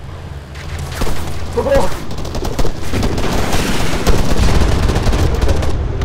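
Gunfire cracks in quick bursts, some far off.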